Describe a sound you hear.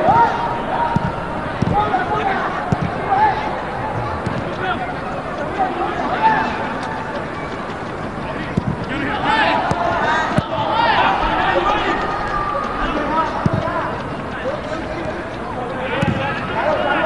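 A large crowd cheers and chants in a stadium.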